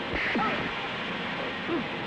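Electric sparks crackle and zap.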